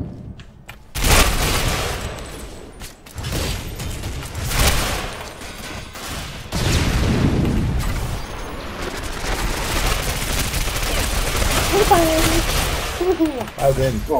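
Gunfire rattles in loud, fast bursts.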